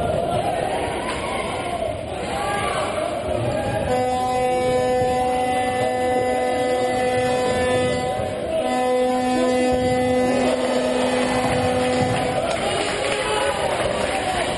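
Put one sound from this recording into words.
A crowd cheers and chants in a large echoing hall.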